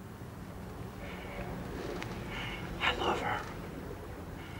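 A man speaks quietly and low.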